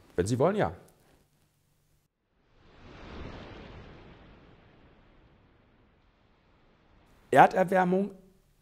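An older man speaks with animation, close by.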